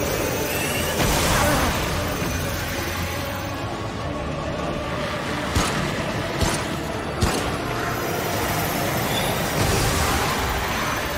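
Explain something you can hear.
A crackling energy blast bursts loudly.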